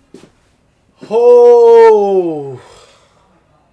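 A young man shouts loudly close to a microphone.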